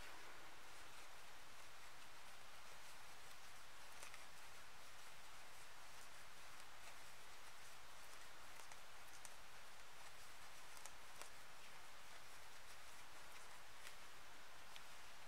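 A crochet hook clicks and rustles softly against yarn.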